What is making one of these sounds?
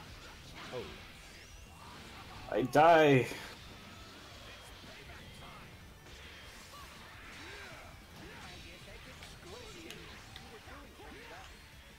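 Blows land with sharp hits during a fight.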